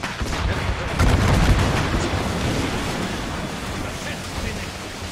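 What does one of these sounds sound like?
Cannons boom in heavy blasts.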